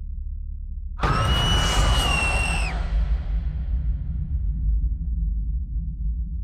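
A loud, shrill shriek bursts out with a deep rumble and slowly fades.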